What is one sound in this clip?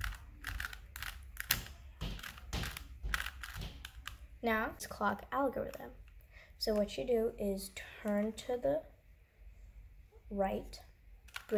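Plastic cube pieces click and clack as the layers are twisted quickly.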